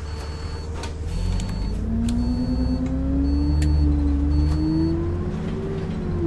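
A bus engine revs up as the bus pulls away.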